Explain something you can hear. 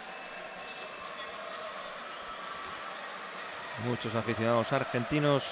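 A large crowd cheers and shouts loudly in a big echoing arena.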